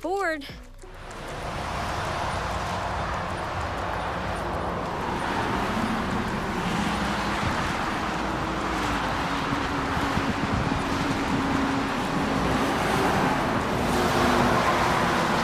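Traffic roars steadily on a highway below.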